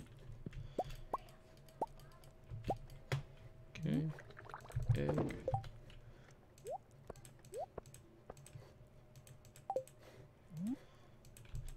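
Short rising electronic blips from a video game sound again and again.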